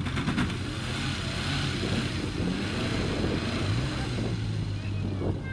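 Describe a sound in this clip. Wind blows across open ground.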